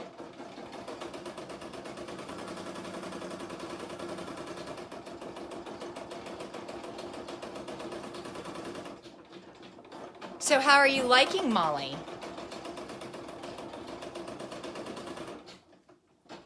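An embroidery machine stitches with a rapid, steady whirring hum.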